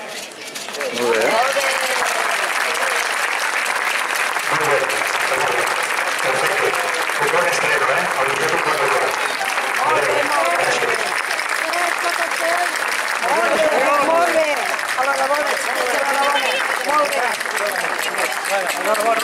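A crowd of adult men and women chatter nearby.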